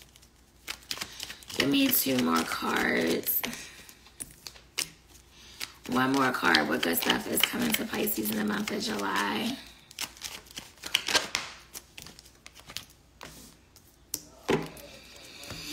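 Paper packets rustle and crinkle in a woman's hands.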